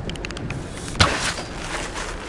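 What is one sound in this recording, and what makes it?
A bowstring twangs as an arrow is shot.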